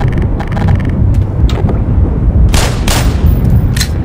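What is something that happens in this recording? A pistol clicks as it is drawn.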